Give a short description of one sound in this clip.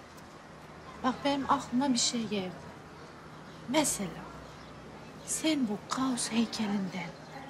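A young woman speaks nearby in a questioning, upset tone.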